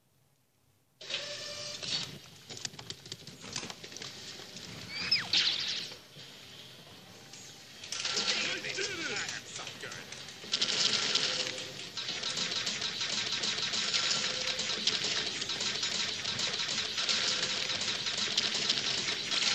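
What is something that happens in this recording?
Video game music plays through a television speaker.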